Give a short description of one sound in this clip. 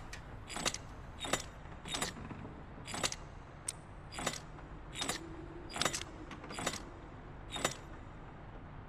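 Lock dials click as they turn, one after another.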